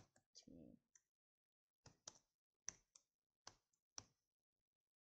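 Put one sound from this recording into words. Keyboard keys click in short bursts.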